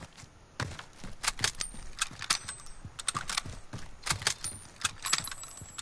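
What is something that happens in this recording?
A rifle's bolt clicks and clatters as it is reloaded.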